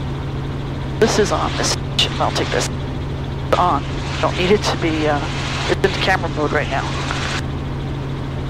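A man talks calmly through a headset microphone.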